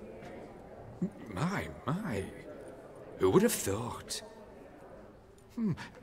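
A middle-aged man speaks smoothly and politely, close by.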